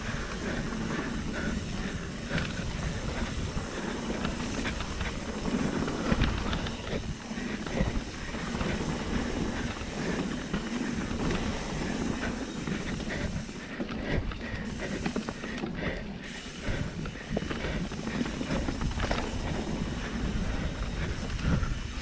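Tyres crunch and rattle over loose dirt and leaves.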